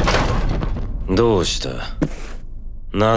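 A man asks a question.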